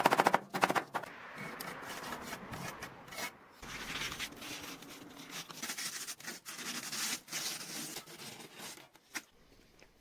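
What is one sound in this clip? A metal trowel scrapes wet mortar against metal.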